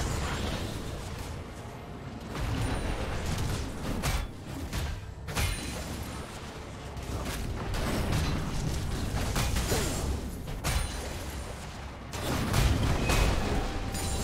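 Magic spells whoosh and blast in a fast video game battle.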